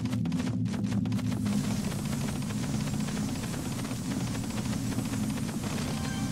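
Soft magical chimes twinkle.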